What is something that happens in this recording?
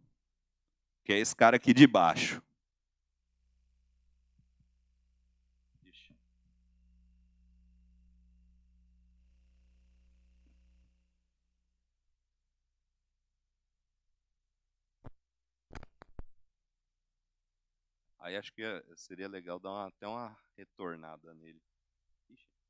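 A man speaks into a microphone, in short bursts with long pauses.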